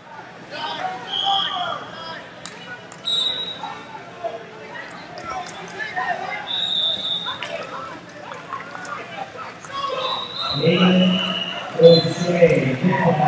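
Shoes squeak sharply on a mat.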